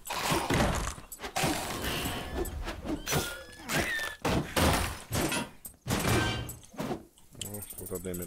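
Sharp hits and blows land in a quick fight.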